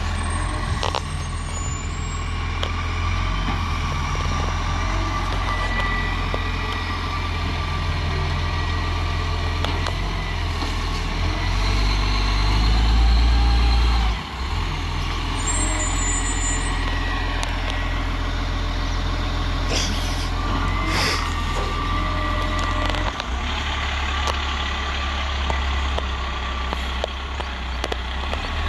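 A garbage truck's diesel engine rumbles and idles nearby.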